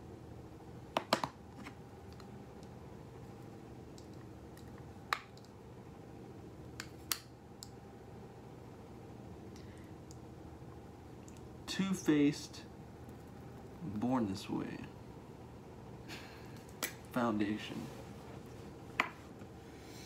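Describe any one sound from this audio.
Small objects click and tap in a young man's hands.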